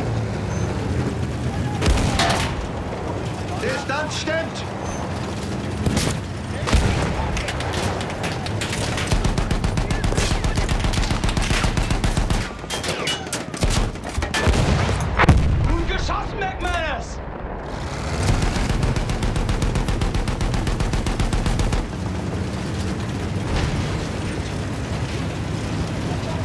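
A tank engine rumbles and its tracks clatter steadily.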